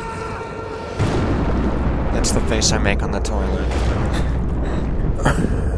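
A deep rumble booms and swells.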